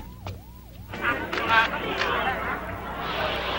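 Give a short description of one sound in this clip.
A crowd murmurs and shouts.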